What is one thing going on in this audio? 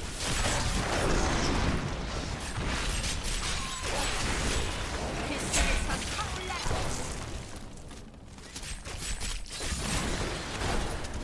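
Fiery spell blasts whoosh and crackle in quick succession.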